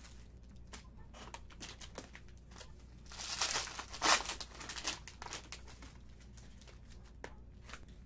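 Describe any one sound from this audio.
Card packs tap and shuffle against a table.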